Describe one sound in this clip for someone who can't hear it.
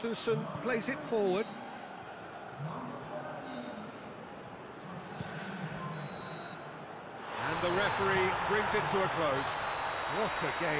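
A large stadium crowd roars steadily, swelling louder toward the end.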